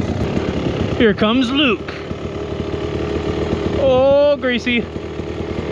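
A dirt bike engine whines in the distance as it climbs.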